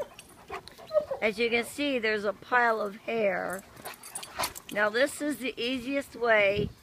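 A dog whines and yelps loudly.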